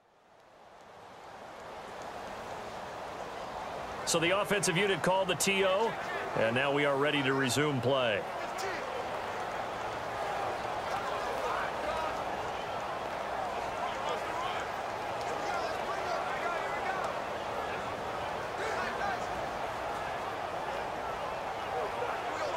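A large crowd cheers and murmurs steadily in a big stadium.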